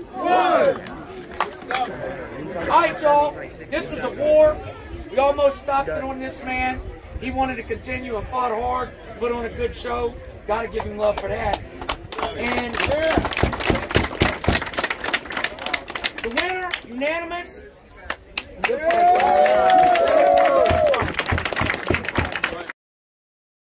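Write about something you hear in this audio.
A man speaks loudly into a microphone, announcing with animation.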